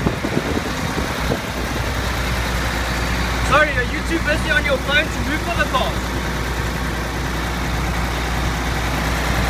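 A diesel truck engine idles close by.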